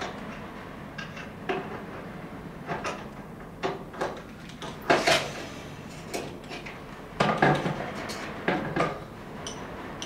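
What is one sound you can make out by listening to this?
Tools knock and clatter on a wooden workbench.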